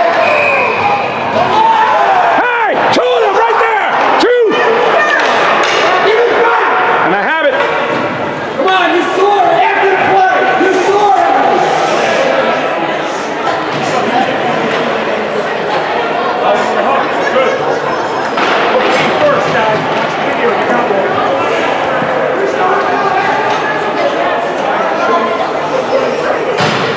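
Spectators shout and cheer in a large echoing arena.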